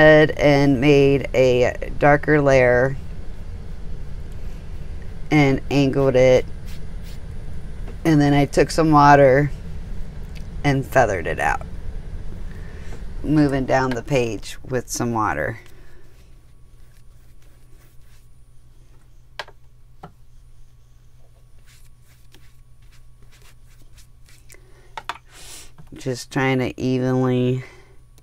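A paintbrush softly brushes and dabs across paper.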